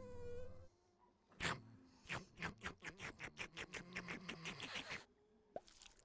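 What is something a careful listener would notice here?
A mosquito buzzes close by.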